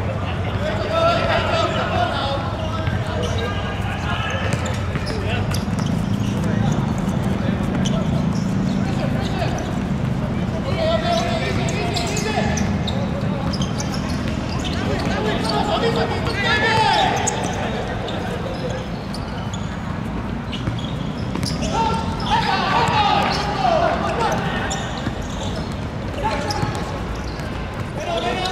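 Young men shout and call to each other across an outdoor pitch.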